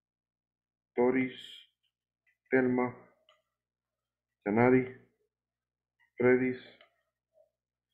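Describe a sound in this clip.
A man speaks slowly in short, separate phrases through an online call.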